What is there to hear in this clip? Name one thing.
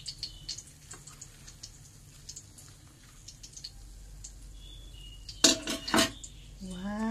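A metal spoon scrapes and clinks against a plate.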